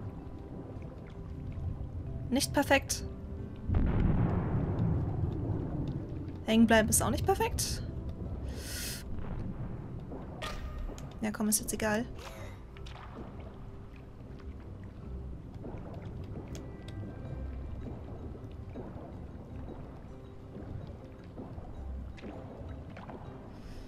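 Water gurgles and bubbles softly underwater.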